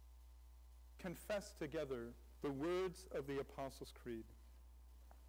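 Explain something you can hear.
A man speaks calmly in a large, echoing hall.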